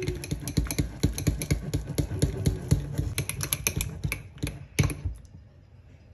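Fingers squish and knead soft cream cheese in a bowl.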